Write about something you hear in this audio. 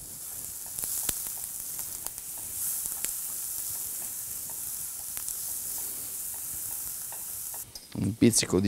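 Food sizzles in a hot pan.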